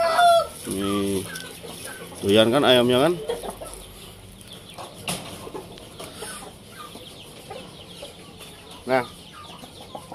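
A hen clucks and squawks close by.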